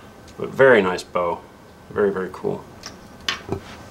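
Small plastic parts click and rattle as they are handled.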